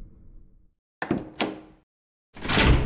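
A heavy door latch clicks.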